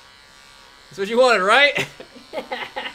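A man laughs close to a microphone.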